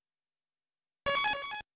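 An electronic chime sounds as a video game menu opens.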